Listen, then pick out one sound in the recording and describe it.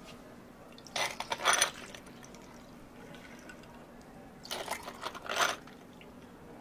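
Milk pours and splashes into a glass.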